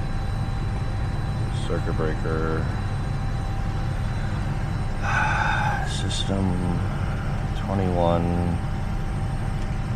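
An aircraft's engines and systems hum low and steadily.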